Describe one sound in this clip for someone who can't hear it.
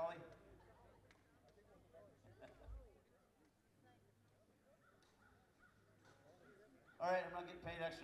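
A man talks quietly through a loudspeaker.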